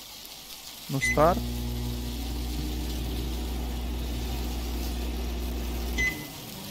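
A microwave hums steadily while running.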